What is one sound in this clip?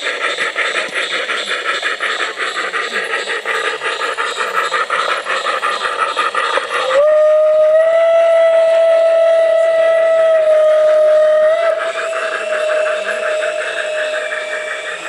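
A garden-scale model train rolls along metal track, its wheels clicking in a quick rhythm.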